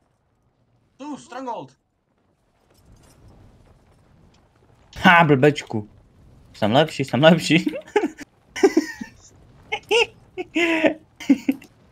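A young man talks with animation close to a headset microphone.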